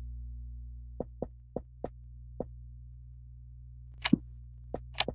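Footsteps tap on a hard floor in short bursts.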